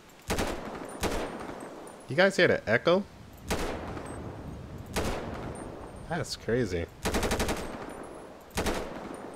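Rifle shots fire in short bursts with echoing booms.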